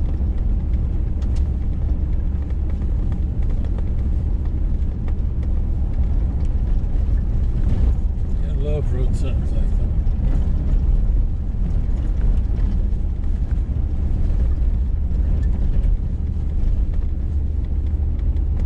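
A car engine rumbles steadily inside the car.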